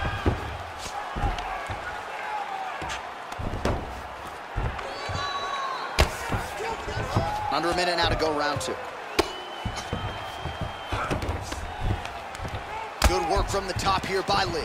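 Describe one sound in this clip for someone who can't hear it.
Heavy punches thud against a body in quick bursts.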